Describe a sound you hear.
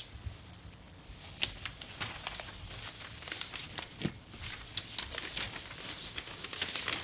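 Paper rustles as pages are handled.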